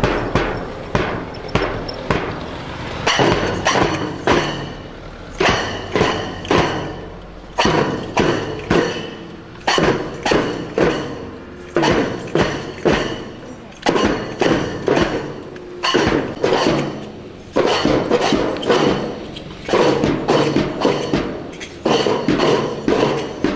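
A bass drum beats in a steady marching rhythm.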